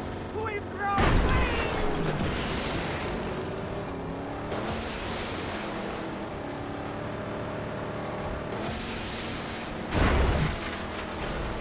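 A loud crash booms as the car lands hard.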